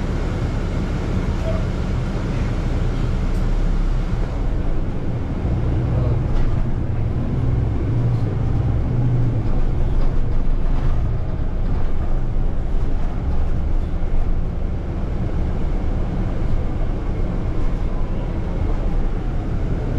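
The bus body rattles and clunks over the road.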